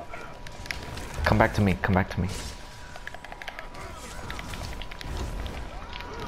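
Magic spells crackle and whoosh in a fight.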